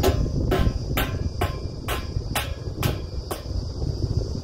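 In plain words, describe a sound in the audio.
Metal clanks sharply at a steady beat.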